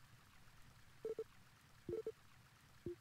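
Short electronic blips chime a few times.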